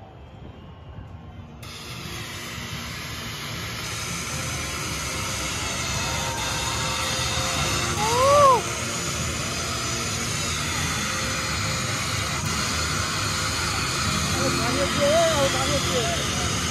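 A large crowd cheers in a big open stadium.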